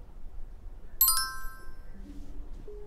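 A computer plays a short bright startup chime.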